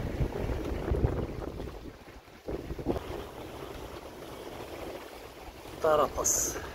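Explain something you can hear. Waves slosh against the side of a sailing boat.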